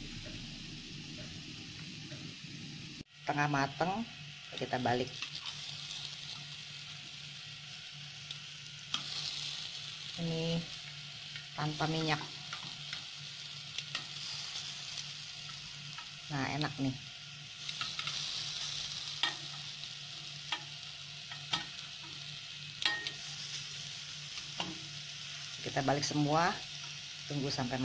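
Batter sizzles steadily in hot oil on a pan.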